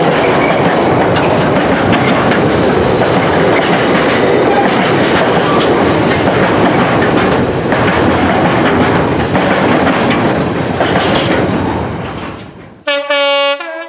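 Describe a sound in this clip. A freight train rumbles and clatters past on the rails.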